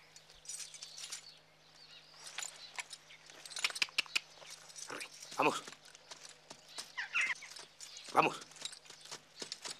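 A horse's hooves clop and shuffle on the ground.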